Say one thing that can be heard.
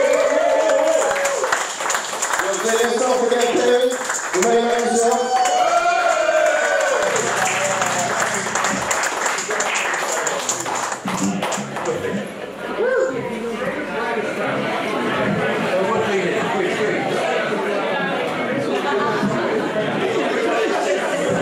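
A man sings loudly into a microphone through a loudspeaker.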